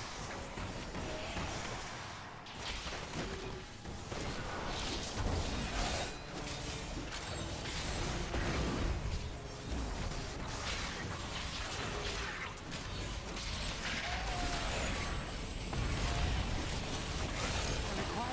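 Game spell blasts and magic effects crackle and boom.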